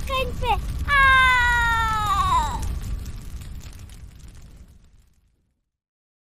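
A fire roars and crackles, then fades away.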